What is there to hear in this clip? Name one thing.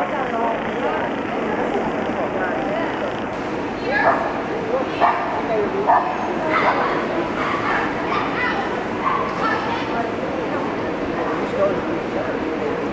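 A crowd murmurs throughout a large echoing hall.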